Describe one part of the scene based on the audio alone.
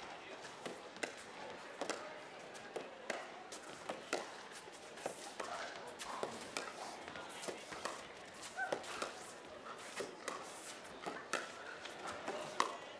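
Paddles pop sharply against a plastic ball in a quick back-and-forth rally.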